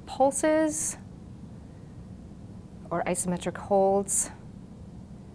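A woman speaks calmly and clearly into a close microphone, in short phrases.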